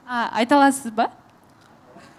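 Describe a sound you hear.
A young woman sings a few notes into a microphone.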